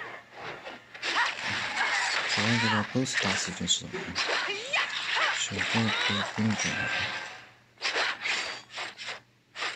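Blades slash and strike in rapid hits.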